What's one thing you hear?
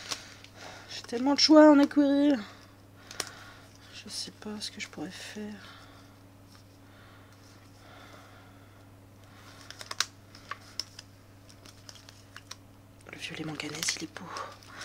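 Plastic colour swatches click and clack together in a hand.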